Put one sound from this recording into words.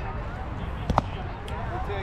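A baseball smacks sharply into a catcher's mitt.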